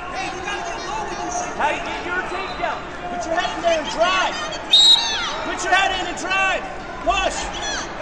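A man shouts instructions loudly close by.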